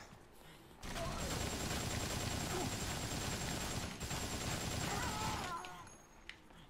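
A machine gun fires in a long, rapid burst.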